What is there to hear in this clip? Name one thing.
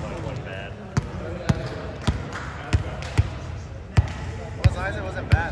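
A volleyball bounces with thuds on a hard floor.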